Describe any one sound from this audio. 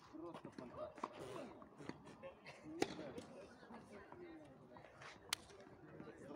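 Tennis rackets strike a ball with sharp pops.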